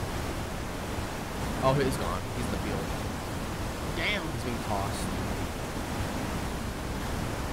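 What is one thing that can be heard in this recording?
Strong wind roars steadily.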